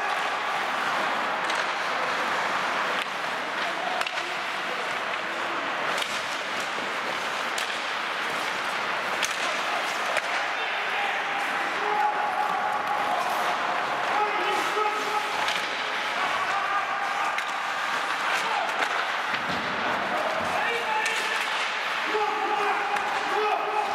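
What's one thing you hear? Ice skates scrape and hiss across the ice in a large echoing hall.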